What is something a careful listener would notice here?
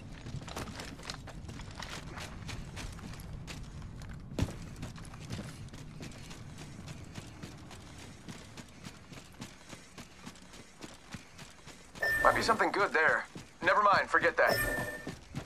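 Footsteps run quickly over a hard surface.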